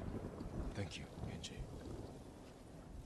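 A second man answers quietly.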